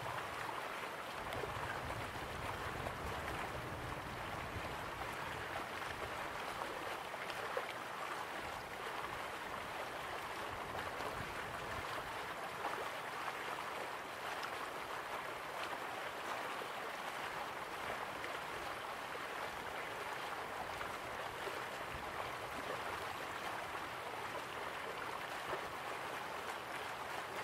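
A waterfall splashes steadily into a pool.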